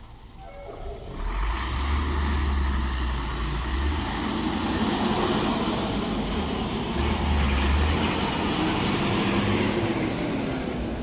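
A truck engine rumbles loudly as it pulls away and passes close by.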